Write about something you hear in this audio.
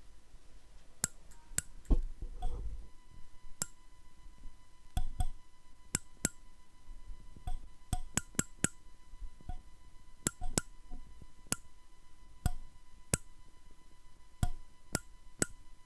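The teeth of a comb are plucked one at a time, heard over an online call.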